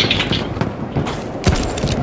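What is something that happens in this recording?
An explosion bursts nearby.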